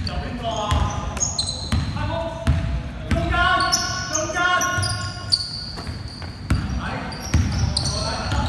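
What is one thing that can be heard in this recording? A basketball bounces with dull thuds on a wooden floor.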